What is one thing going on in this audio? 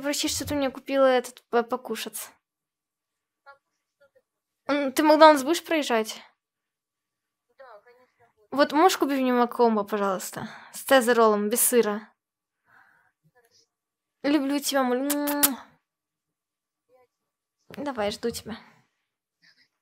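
A young woman talks in short bursts into a nearby microphone, with pauses between.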